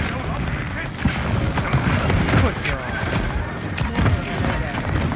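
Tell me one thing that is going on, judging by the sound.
Explosions boom and crackle in a video game.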